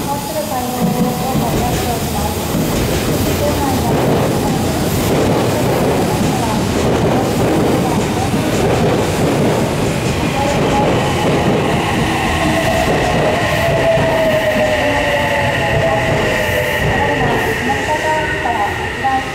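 An electric train rumbles past close by.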